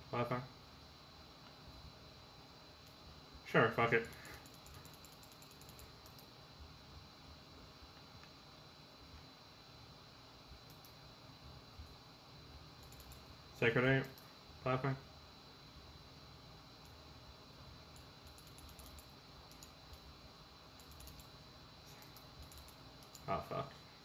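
Keys click softly on a keyboard.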